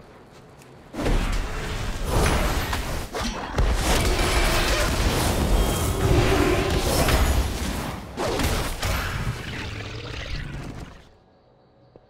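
Weapons strike with heavy blows.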